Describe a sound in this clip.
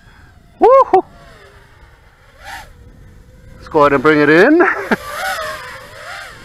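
A small drone whines overhead, its motors revving up and down in pitch.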